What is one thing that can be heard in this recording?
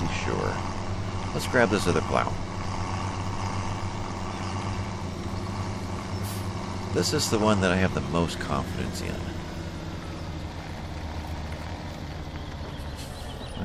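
A tractor engine rumbles steadily as the tractor drives along.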